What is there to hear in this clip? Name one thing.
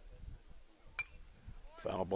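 A baseball pops into a catcher's mitt.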